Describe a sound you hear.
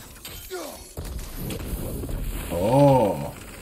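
A magical blast bursts with a crackling whoosh.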